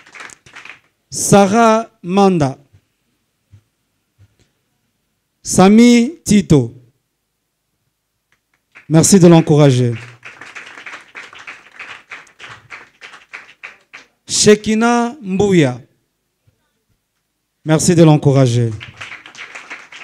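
A man speaks into a microphone, announcing with animation.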